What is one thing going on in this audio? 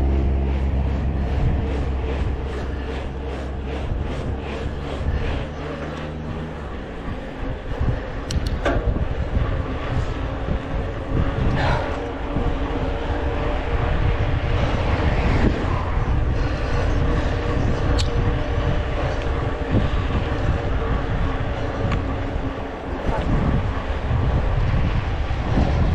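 Wind rumbles loudly against a moving bicycle rider.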